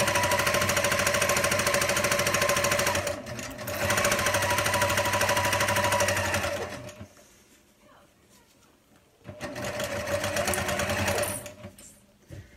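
A sewing machine whirs steadily as it stitches, stopping and starting again.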